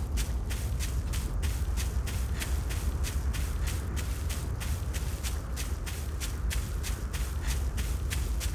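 Leafy vines rustle with quick, regular grabs as someone climbs.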